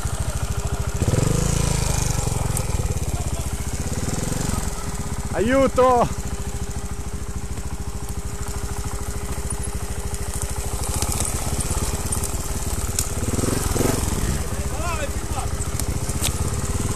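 A dirt bike engine idles and revs close by, with a buzzing putter.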